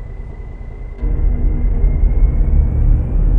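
A truck engine rumbles louder and closer, heard from inside the cab.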